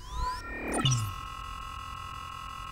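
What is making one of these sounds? An electronic error tone buzzes steadily.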